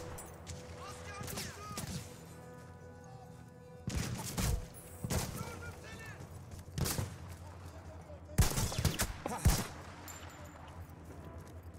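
Pistol shots pop in quick bursts.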